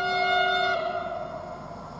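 A train horn sounds from a distance.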